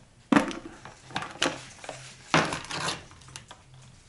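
A plastic cover knocks and scrapes as it is lifted off.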